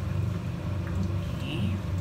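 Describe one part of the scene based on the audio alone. A middle-aged woman speaks briefly nearby.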